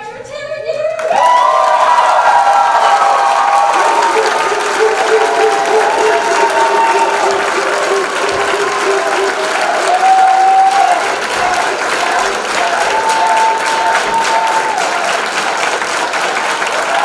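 A large crowd claps loudly.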